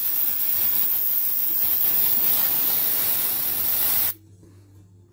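A can of spray string hisses loudly up close.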